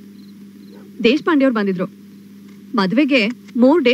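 A middle-aged woman speaks calmly, close by.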